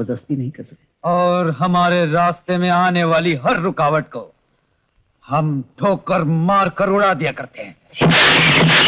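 A second man answers in a firm, angry voice, close by.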